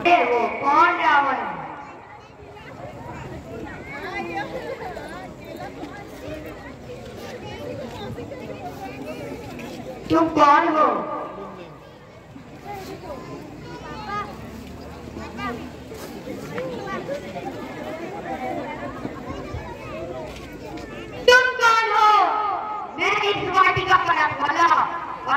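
Performers sing loudly through loudspeakers outdoors.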